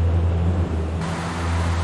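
Wind rushes loudly past an aircraft.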